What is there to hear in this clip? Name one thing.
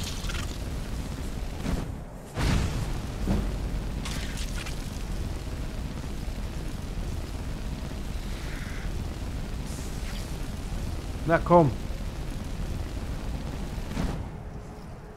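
A frost spell hisses and crackles steadily.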